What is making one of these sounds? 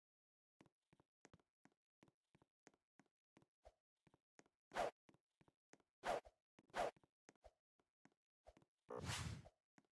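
Quick footsteps tap on a hard floor.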